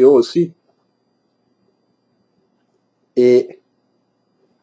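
A middle-aged man speaks close to a microphone in short bursts.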